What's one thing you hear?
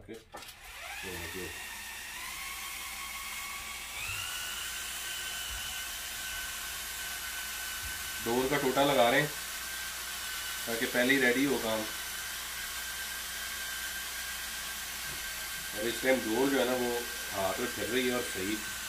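A cordless drill whirs as it spins a reel.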